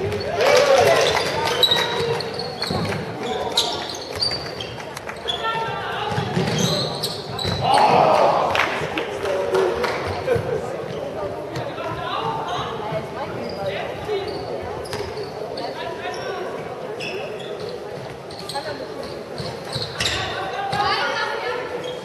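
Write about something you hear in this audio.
A ball thuds as it bounces on a hard floor.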